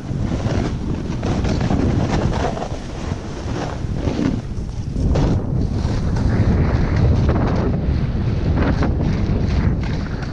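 A snowboard hisses and scrapes over snow.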